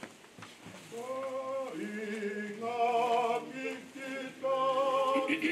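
A congregation begins to sing together.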